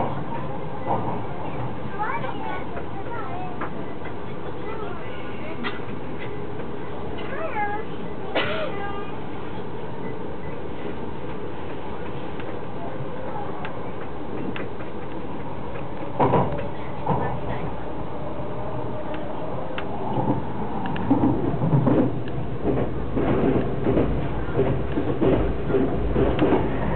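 A train hums steadily as it pulls away and gathers speed.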